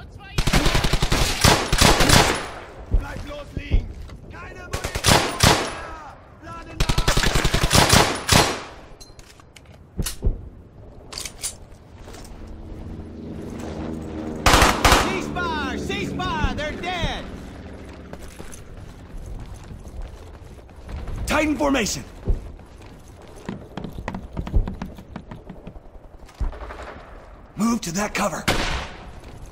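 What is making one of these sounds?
Gunfire rattles in rapid bursts, echoing in a large hall.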